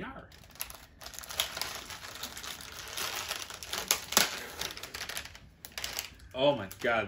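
A plastic wrapper crinkles and tears open.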